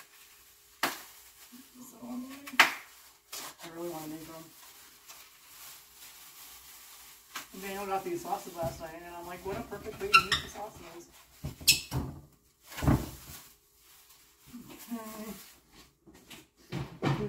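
Dishes clink and clatter on a counter.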